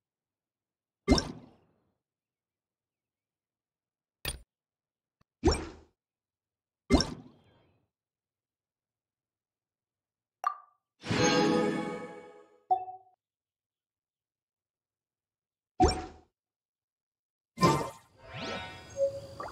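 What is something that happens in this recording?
Short game menu chimes sound as menus open and close.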